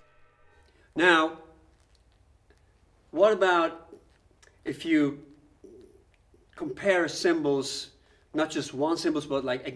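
A middle-aged man speaks calmly in short bursts, close by.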